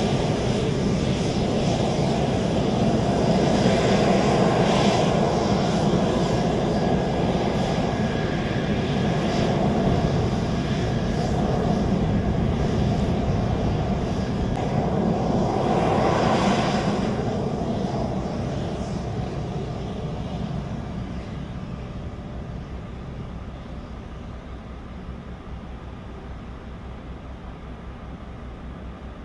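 A jet engine roars and whines loudly close by, then slowly fades.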